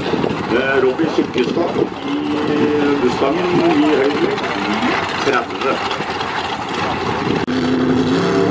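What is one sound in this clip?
Loud race car engines rumble and rev.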